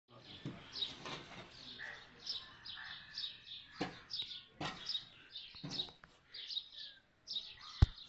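A hoe digs into loose soil with dull scraping thuds.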